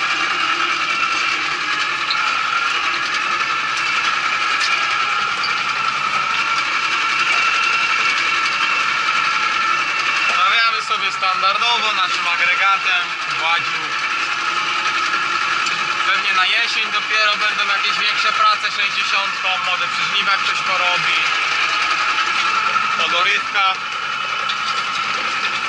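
A harrow rattles over ploughed soil.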